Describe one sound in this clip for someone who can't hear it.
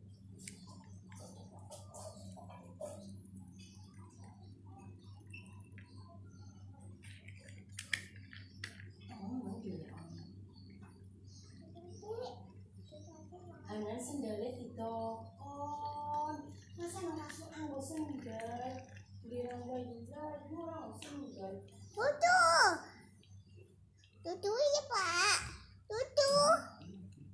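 Plastic toy wheels roll across a hard floor.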